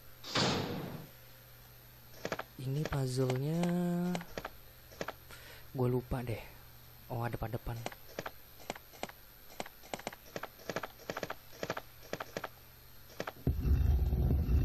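Buttons on a game controller click softly.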